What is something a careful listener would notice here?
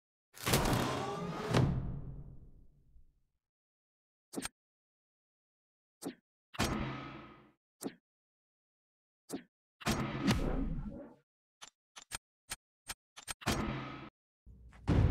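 Whooshing, swelling game menu sounds play in bursts.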